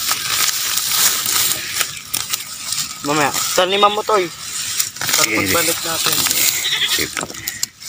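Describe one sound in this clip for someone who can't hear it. Grass rustles and crackles as a hand pushes through it, close by.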